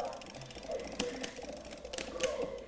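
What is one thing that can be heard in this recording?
Arcade buttons click sharply.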